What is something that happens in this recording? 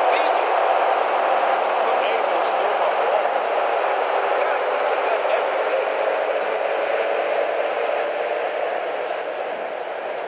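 A car engine idles with a steady hum.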